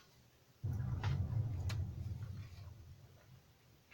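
Paper rustles as a sheet is slid across a table.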